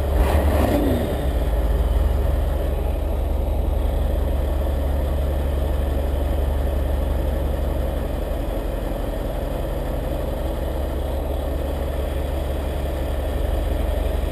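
A bus engine rumbles and idles loudly close by.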